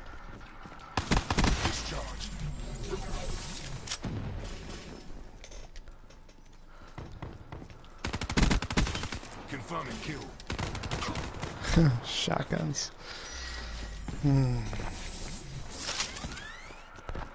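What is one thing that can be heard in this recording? Automatic gunfire rattles in short, loud bursts.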